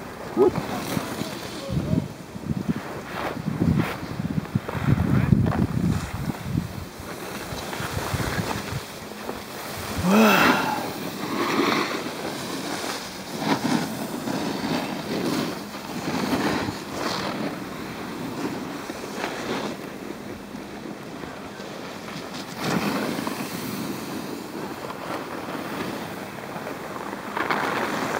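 A snowboard scrapes and hisses over packed snow close by.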